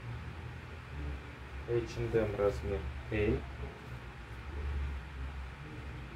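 Cloth rustles softly as a shirt is laid flat.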